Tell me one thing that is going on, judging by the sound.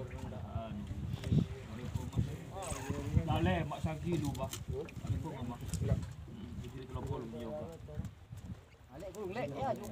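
A knife scrapes against a fish.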